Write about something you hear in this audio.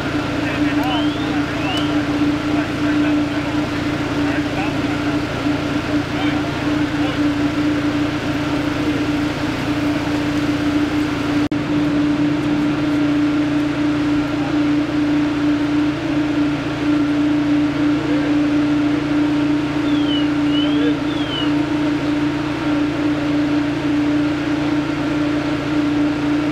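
A fire engine idles nearby with a steady, droning hum.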